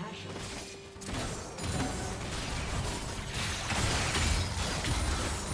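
Game spell effects and combat hits crackle and clash.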